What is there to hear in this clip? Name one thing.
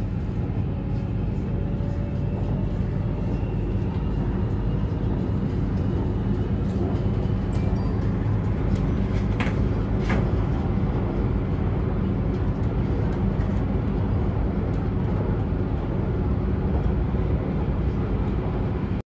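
A train rumbles steadily along an elevated track, heard from inside.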